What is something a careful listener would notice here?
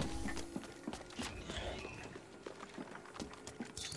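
Footsteps patter quickly in a video game.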